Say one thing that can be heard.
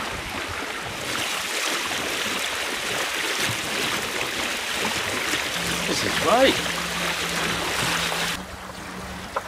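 Water splashes and rushes along a moving boat's hull.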